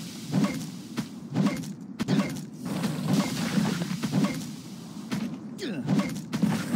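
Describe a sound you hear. Game weapon blows strike a monster with repeated thuds.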